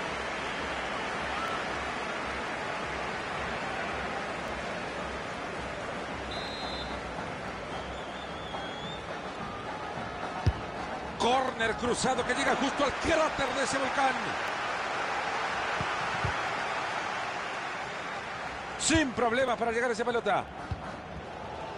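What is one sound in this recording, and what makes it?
A large stadium crowd murmurs and roars steadily throughout.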